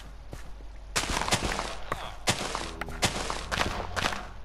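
Plants rustle and crunch as they are broken, several times.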